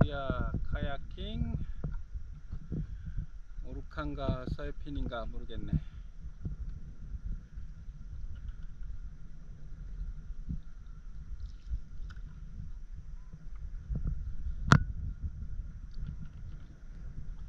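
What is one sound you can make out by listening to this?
Small waves lap gently against a paddleboard.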